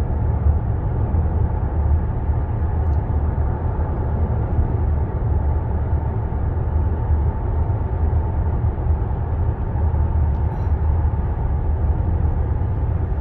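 A car engine hums steadily in a tunnel.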